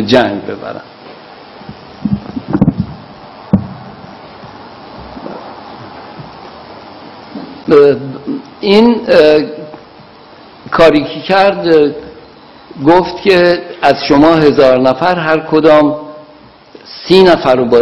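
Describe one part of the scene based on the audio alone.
A middle-aged man speaks calmly and deliberately into a microphone, with pauses.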